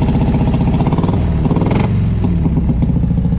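A motorcycle engine briefly revs up and settles back to idle.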